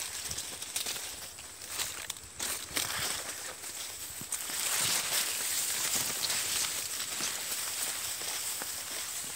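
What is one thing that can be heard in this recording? Dry grass and leaves rustle and crackle close by as someone pushes through tall stalks.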